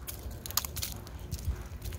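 Dry leaves rustle underfoot.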